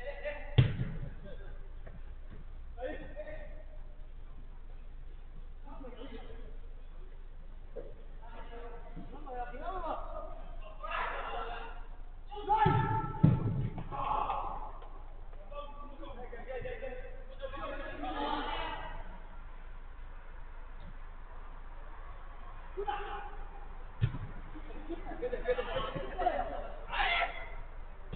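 Men shout to each other across an indoor pitch, heard from a distance.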